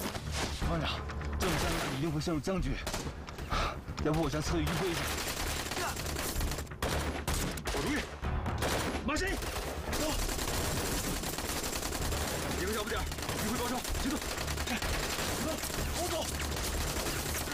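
A young man speaks urgently and close.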